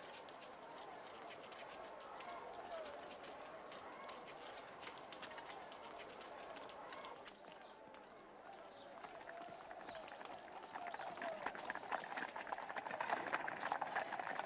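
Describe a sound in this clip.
Footsteps shuffle on stone.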